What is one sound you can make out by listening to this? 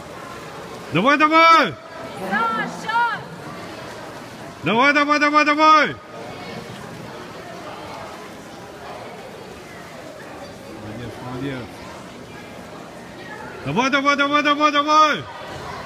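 A crowd of spectators shouts and cheers loudly in bursts.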